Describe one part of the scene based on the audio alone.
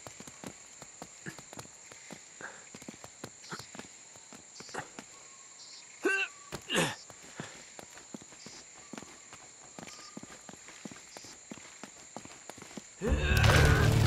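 Footsteps patter softly over leaves and stone.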